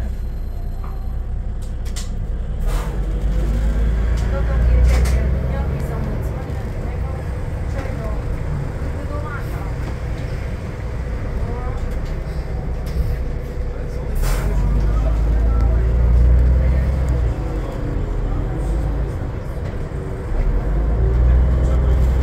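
A bus engine rumbles low as the bus pulls away and drives on.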